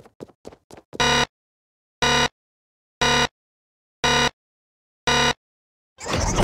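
An electronic countdown beeps five times, one beep each second.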